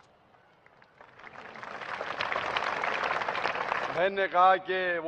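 A large crowd applauds loudly.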